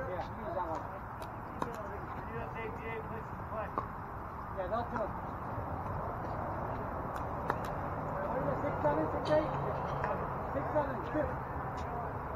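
Men talk casually nearby, outdoors.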